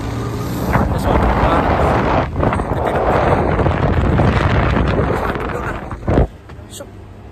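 Wind gusts loudly against a microphone outdoors.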